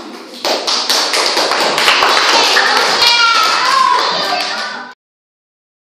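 Children's feet thump on a hard floor as they jump.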